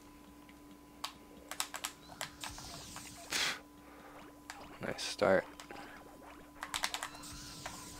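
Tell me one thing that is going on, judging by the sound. Cartoonish sound effects chime and pop.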